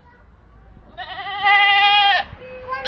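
A goat bleats through a fence.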